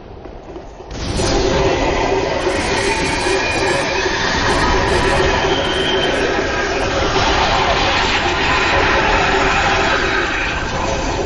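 Blades clash and strike in a fight.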